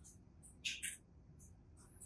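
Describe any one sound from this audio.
A plastic toy egg rattles in a hand.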